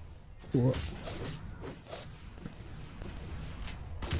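A magical blast bursts with a bright whoosh.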